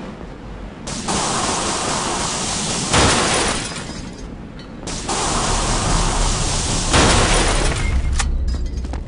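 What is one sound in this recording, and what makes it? A welding torch hisses loudly in bursts.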